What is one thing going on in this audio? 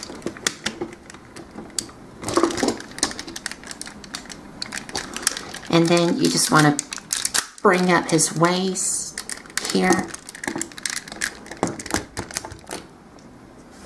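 Plastic parts of a toy click and snap as hands twist them into place.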